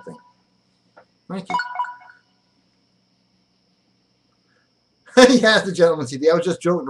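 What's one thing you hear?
A middle-aged man speaks close to a webcam microphone, with animation.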